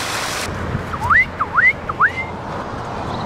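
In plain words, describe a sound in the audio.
A young mink squeaks in short high chirps.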